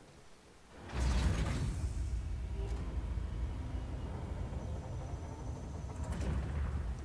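A heavy metal door rumbles and grinds as it slides open.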